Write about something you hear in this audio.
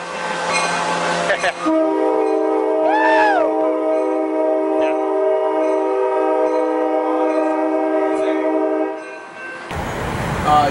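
A train rolls slowly past close by.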